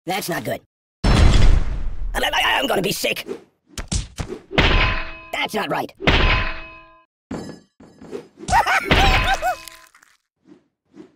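A heavy metal hammer thuds and clangs in cartoonish game sound effects.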